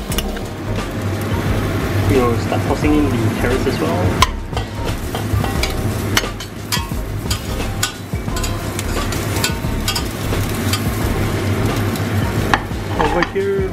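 A metal spoon clinks against a steel pot.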